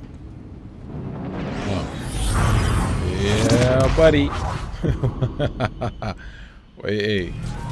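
A spaceship engine roars and whooshes past.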